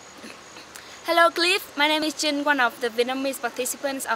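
A young woman speaks cheerfully, close by.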